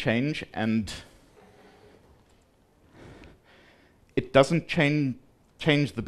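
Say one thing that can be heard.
A man speaks steadily into a microphone, giving a talk.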